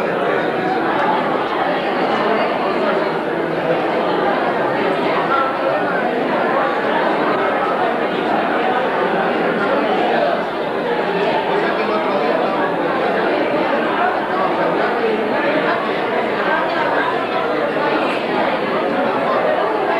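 A large crowd of men and women chatter at once, filling an echoing hall.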